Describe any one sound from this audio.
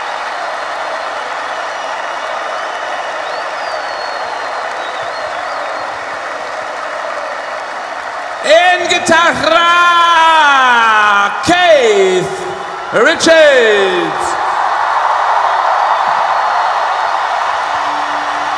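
A large crowd cheers and roars in a big open arena.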